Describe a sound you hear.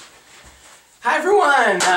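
A man speaks cheerfully and close to a microphone.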